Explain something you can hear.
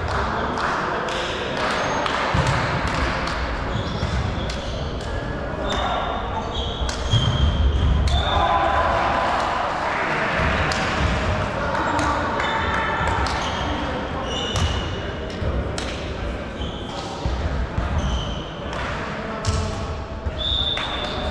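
A volleyball thumps and slaps as players hit it.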